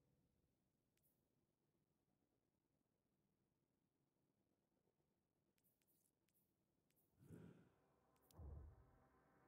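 Soft electronic menu clicks tick now and then.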